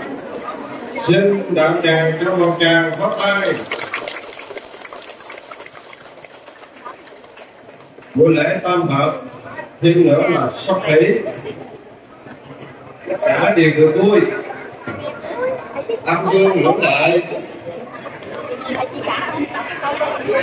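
A man speaks loudly through a microphone and loudspeakers.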